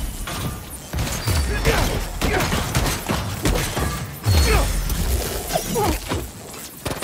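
Punches and blows land with heavy thuds.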